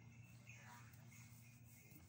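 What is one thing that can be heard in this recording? Footsteps pass by on a stone pavement.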